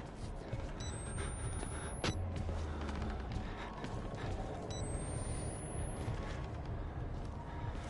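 A young man talks quietly and close to a microphone.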